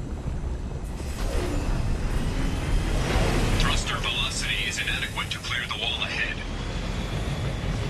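A shuttle engine roars loudly as it flies past.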